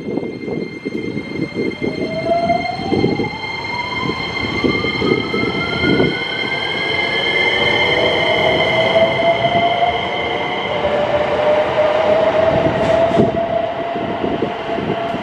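A train's electric motors whine, rising steadily in pitch as it pulls away.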